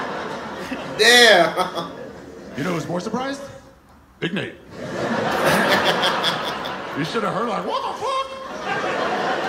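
Two young men laugh loudly close by.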